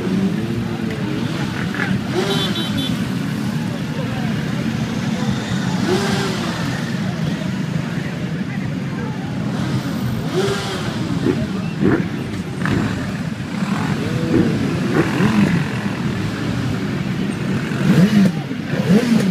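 Many motorcycle engines rumble steadily close by, outdoors.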